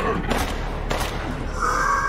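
A monster snarls and growls close by.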